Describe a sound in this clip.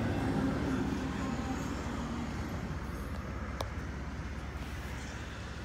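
A freight train rumbles steadily past, heard from inside a car.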